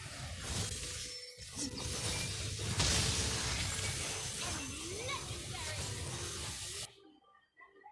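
Video game battle effects clash and boom loudly.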